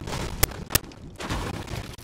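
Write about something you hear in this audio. Shotgun blasts ring out in quick bursts.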